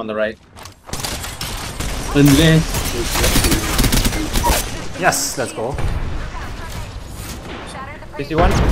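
An automatic gun fires rapid shots.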